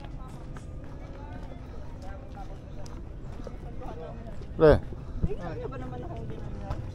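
A young woman's voice chats nearby in passing.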